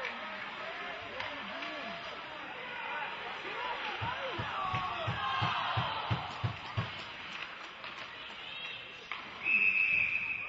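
Skates scrape across ice in a large echoing arena.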